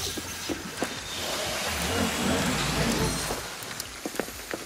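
A humming energy beam swells and fades.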